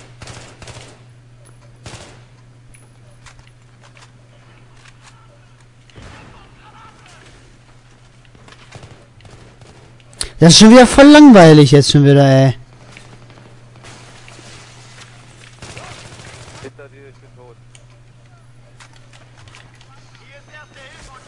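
Gunshots crack in short bursts.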